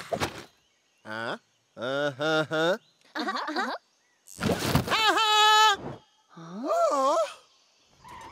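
A young boy shouts with excitement.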